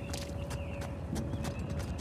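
Footsteps climb stone steps.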